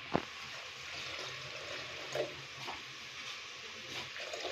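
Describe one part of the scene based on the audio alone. Water pours into a plastic jug.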